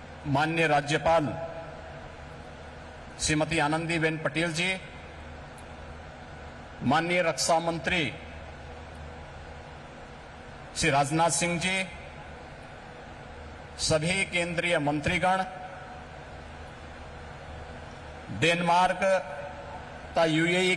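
A man speaks slowly and deliberately into a microphone over loudspeakers, with long pauses, in a large hall.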